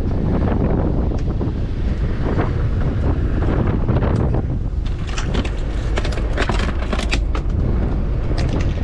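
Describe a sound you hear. Wind rumbles loudly outdoors on open water.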